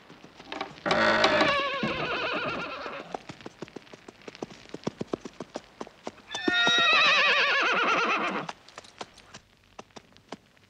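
Horse hooves thud on soft ground.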